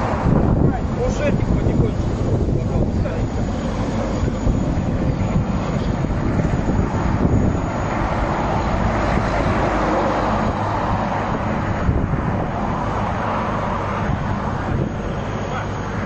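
Wind buffets loudly outdoors.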